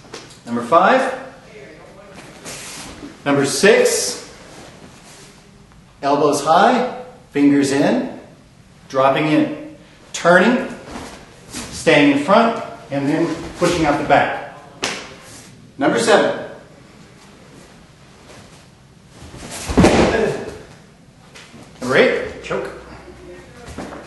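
Feet shuffle on a padded mat.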